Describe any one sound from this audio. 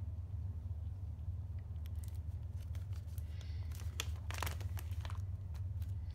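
A plastic binder page rustles and crinkles as it turns.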